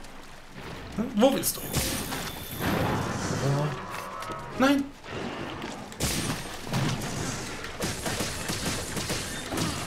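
A large beast roars and thrashes.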